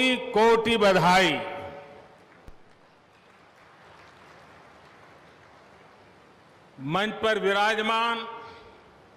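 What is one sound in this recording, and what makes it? An elderly man speaks slowly and emphatically into a microphone, echoing over loudspeakers.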